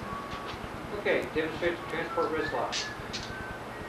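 A man speaks calmly nearby in a room with some echo.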